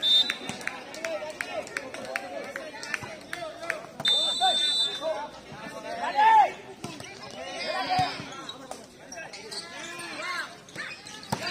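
Young men shout and call out across an outdoor court.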